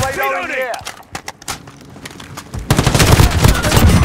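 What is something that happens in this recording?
Rapid gunshots fire in bursts.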